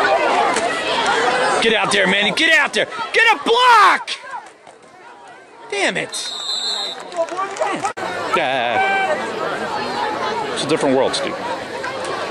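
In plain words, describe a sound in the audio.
A crowd of spectators cheers and shouts outdoors.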